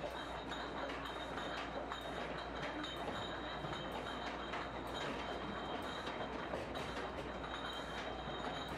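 Glass bottles clink and rattle against each other.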